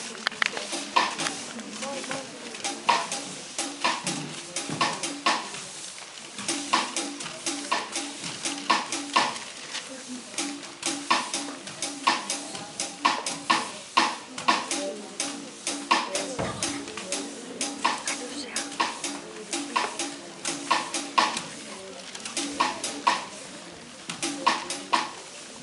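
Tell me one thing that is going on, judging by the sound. Drums beat a steady rhythm in a large echoing hall.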